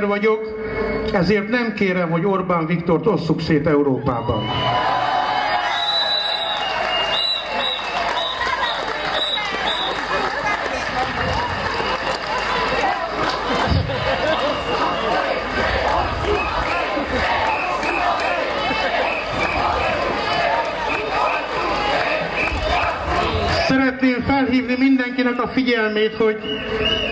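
A man speaks loudly and with emphasis through a loudspeaker outdoors.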